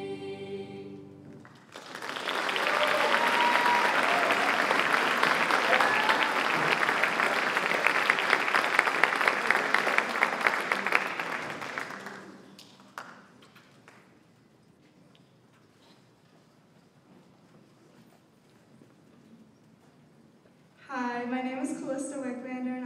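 A choir of young voices sings in a large hall.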